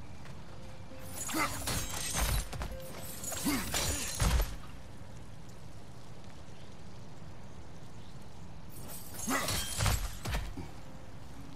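A climber leaps and lands with heavy thuds and scrapes against rock.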